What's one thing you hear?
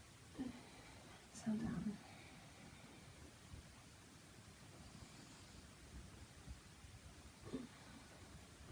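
A young woman breathes out heavily close by.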